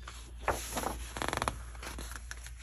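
Paper rustles as a page of a book turns.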